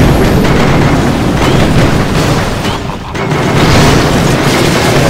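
Explosions boom and crackle repeatedly.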